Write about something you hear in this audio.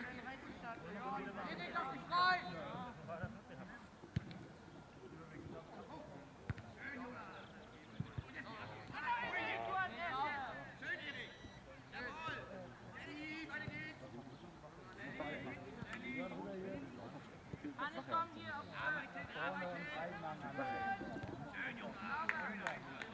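Young boys shout to each other across an open field.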